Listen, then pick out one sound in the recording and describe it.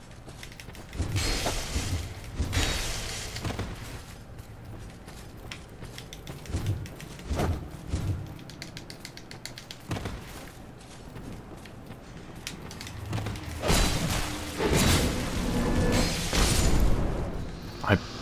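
A heavy axe swings with a whoosh.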